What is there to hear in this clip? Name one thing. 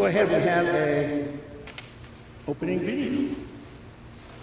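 An older man speaks calmly through a microphone in a reverberant room.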